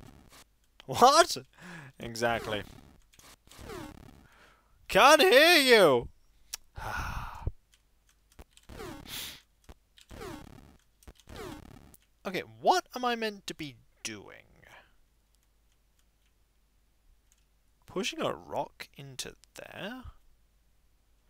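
Retro video game sound effects chirp and bleep in short bursts.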